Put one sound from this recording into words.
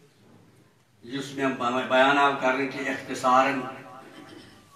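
An elderly man speaks with animation into a headset microphone, heard through a loudspeaker.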